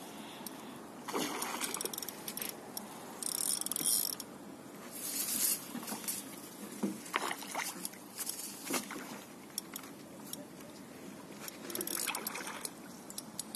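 A hooked fish splashes and thrashes at the water's surface.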